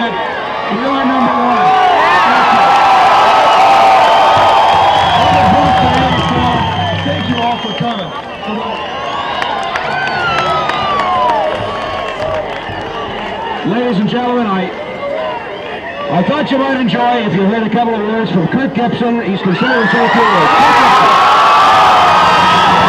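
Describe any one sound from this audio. A man speaks through a loudspeaker to a large outdoor crowd.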